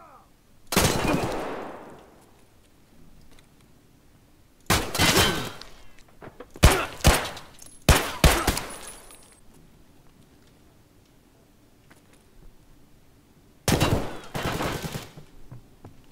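Gunshots ring out loudly with echoing reverberation.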